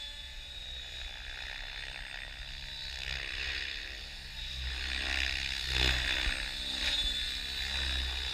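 A small drone buzzes in the air.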